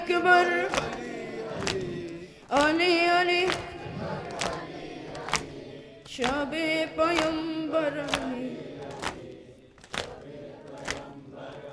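A boy chants a mournful lament through a microphone in an echoing hall.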